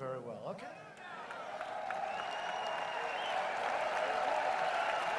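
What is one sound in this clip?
A large crowd cheers and roars.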